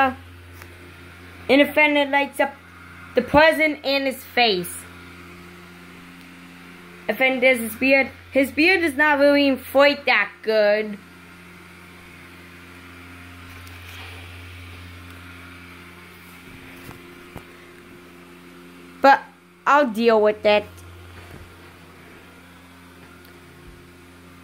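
A small blower fan hums steadily and low.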